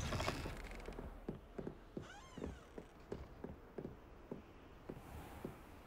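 Footsteps thud steadily on wooden planks.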